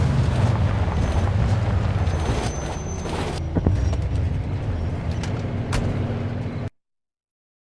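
A car engine rumbles as a car drives slowly.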